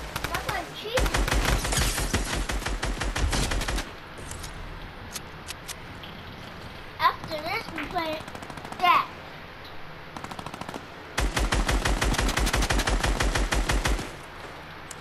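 A video game automatic rifle fires in rapid bursts.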